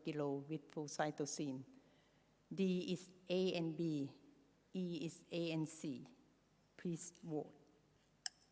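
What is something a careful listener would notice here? A woman speaks into a microphone in a calm, lecturing way.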